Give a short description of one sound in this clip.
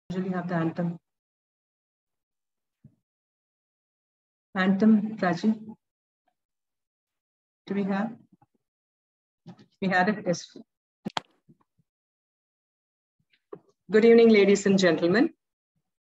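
A woman speaks over an online call in short bursts with pauses.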